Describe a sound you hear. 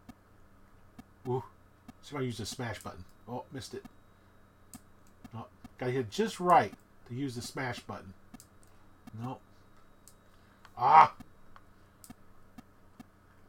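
A video game gives short electronic blips as a ball bounces.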